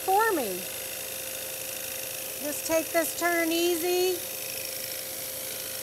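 A scroll saw buzzes steadily as it cuts through wood.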